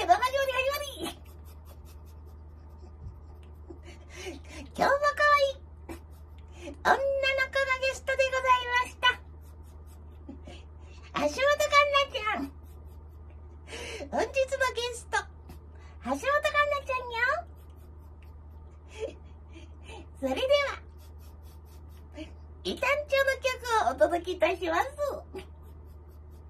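A girl sings short high phrases close by, with pauses between them.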